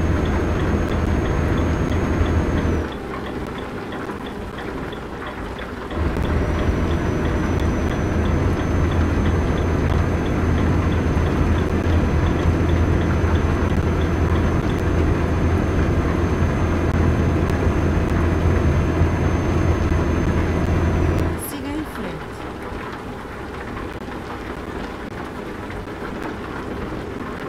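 A truck engine drones low and steadily, easing off now and then.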